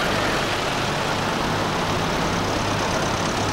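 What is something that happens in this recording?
A tractor engine chugs past close by.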